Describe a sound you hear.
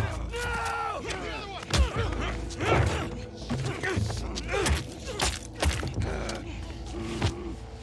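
A man groans and cries out in pain during a struggle.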